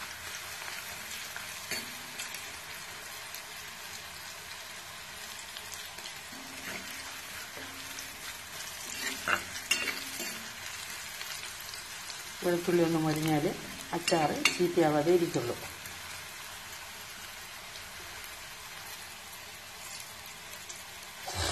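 Oil sizzles steadily as food fries in a pan.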